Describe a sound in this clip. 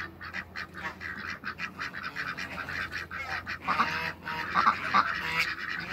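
A duck flaps its wings.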